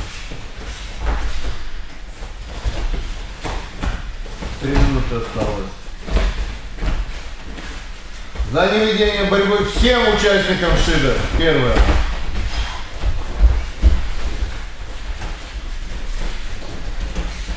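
Bare feet shuffle and thump on a padded mat.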